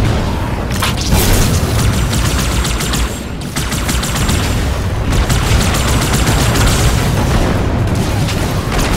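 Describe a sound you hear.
Energy weapons fire in rapid crackling bursts.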